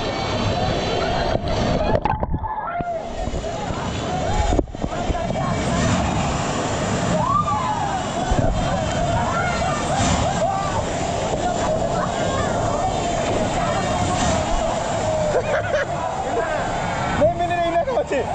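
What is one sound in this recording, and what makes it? Water churns and splashes loudly close by.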